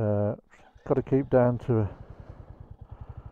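A motorcycle engine idles with a rapid steady putter.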